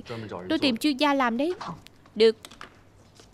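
A young woman speaks brightly close by.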